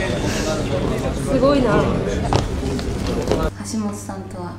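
A crowd chatters loudly nearby.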